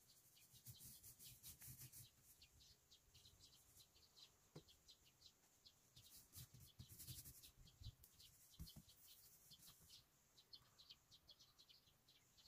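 A paintbrush swishes across wall siding.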